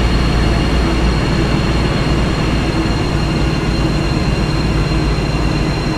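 A train engine rumbles steadily.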